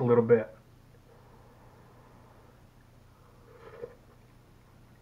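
A man chews and slurps food.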